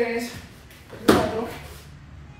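A body thuds onto a padded floor.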